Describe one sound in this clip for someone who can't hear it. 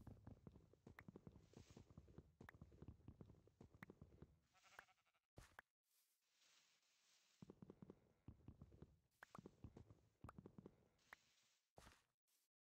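Leaves crunch and rustle rapidly as blocks are broken.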